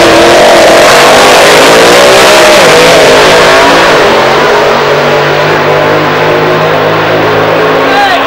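A nitro-fuelled top fuel dragster roars past at full throttle, and the thunder fades down the strip.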